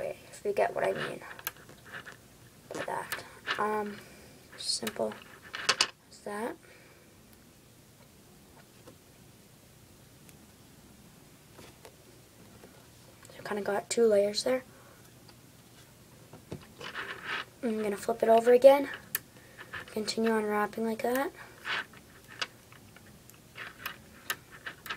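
Small metal balls click and snap together.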